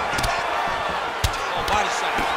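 A kick thuds against a fighter's body.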